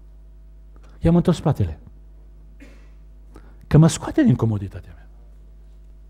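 A middle-aged man speaks forcefully through a microphone in a large echoing hall.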